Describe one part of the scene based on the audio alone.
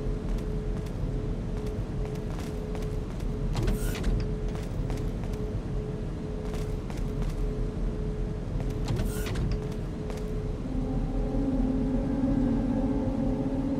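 Machines hum steadily in the background.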